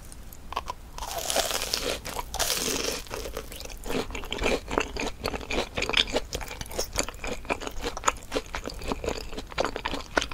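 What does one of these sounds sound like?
A woman chews crunchy fried food with crackling close to a microphone.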